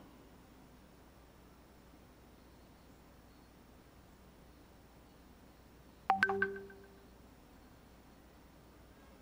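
A paintbrush softly brushes across a canvas.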